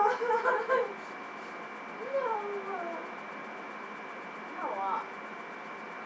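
A young girl calls out and squeals playfully nearby.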